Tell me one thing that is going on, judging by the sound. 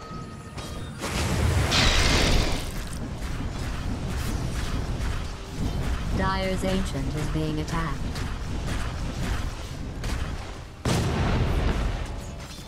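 Spell effects and blows crackle and clash in a fight.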